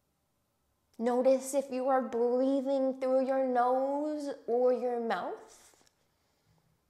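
A young woman sings a short phrase in a clear voice, close to a microphone.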